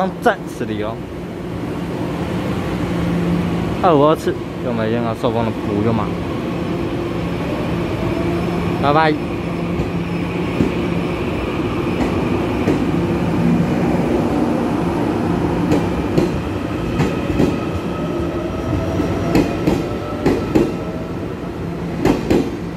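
A train rolls slowly out of a station with a steady low rumble.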